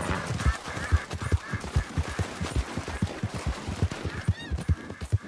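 A horse splashes through shallow water at a gallop.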